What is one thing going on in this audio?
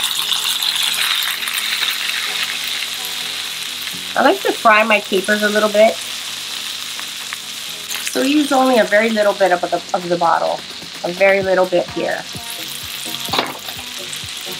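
Fish sizzles in hot butter in a pan.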